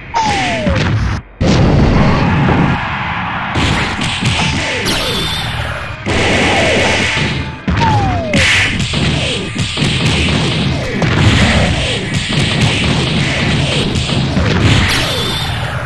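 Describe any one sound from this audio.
Punches and kicks land with heavy, quick thuds and blasts.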